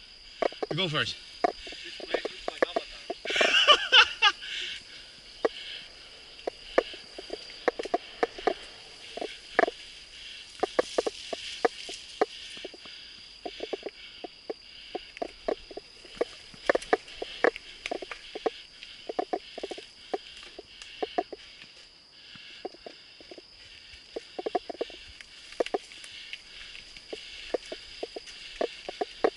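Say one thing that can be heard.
A mountain bike rattles and clicks over a bumpy dirt trail.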